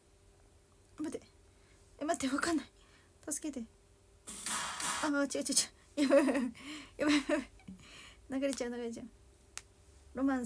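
A young woman speaks close to the microphone, softly and then with animation.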